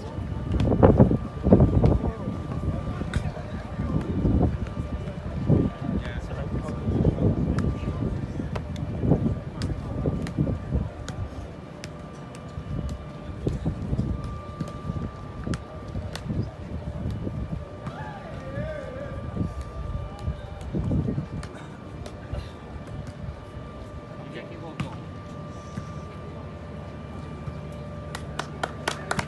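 A crowd of men chatters and calls out nearby, outdoors.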